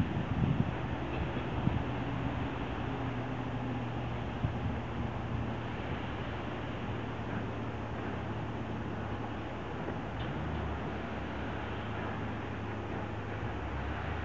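A passenger train runs by with a steady hum.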